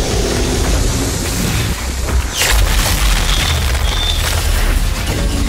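Gunfire and blasts ring out in a video game fight.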